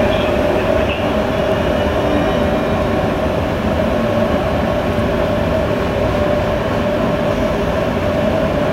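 A train stands idling with a steady low hum.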